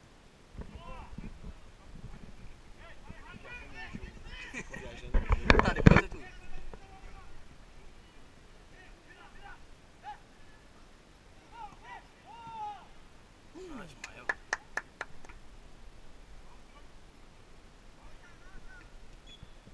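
Young men shout to each other across an outdoor pitch, heard from a distance.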